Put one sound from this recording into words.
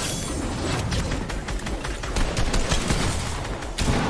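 An automatic gun fires rapid bursts of shots.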